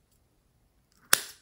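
Scissors snip through a plastic packet.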